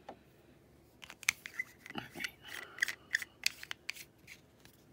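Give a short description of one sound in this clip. A plastic ink bottle clicks and rattles in hands.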